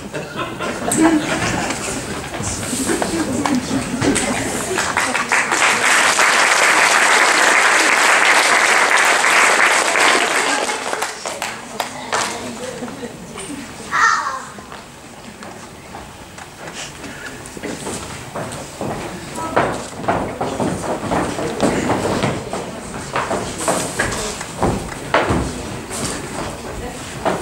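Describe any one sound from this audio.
Children speak loudly on a stage in a large echoing hall.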